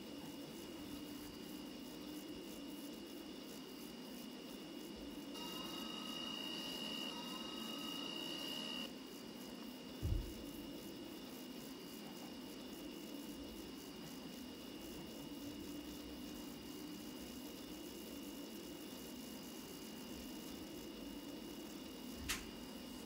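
A tram motor hums steadily as the tram rolls along the track.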